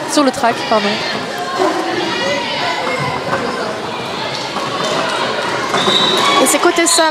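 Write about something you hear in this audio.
Skate wheels roll and scrape on a wooden floor.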